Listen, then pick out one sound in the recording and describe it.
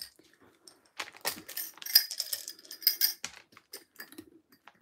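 Small beads rattle inside a glass jar.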